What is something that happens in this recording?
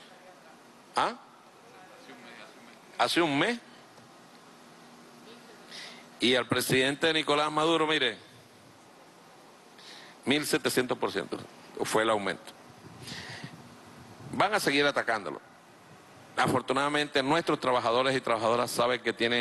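A middle-aged man speaks forcefully into a microphone, in bursts with pauses.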